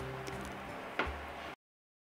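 A plate is set down on a wooden table.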